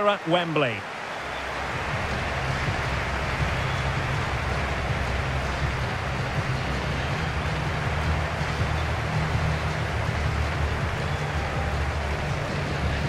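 A large crowd cheers and murmurs steadily in an open stadium.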